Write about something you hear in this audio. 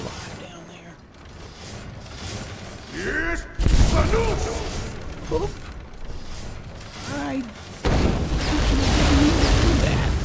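Swinging blades whoosh through the air.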